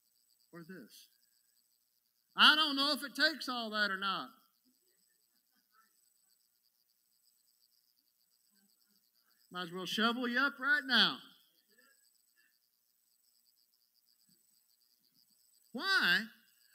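A middle-aged man speaks with emphasis through a microphone, pausing often between phrases.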